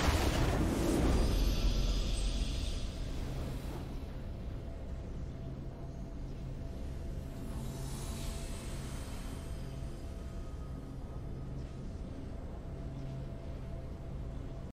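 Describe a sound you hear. A triumphant fanfare plays, with low sustained tones.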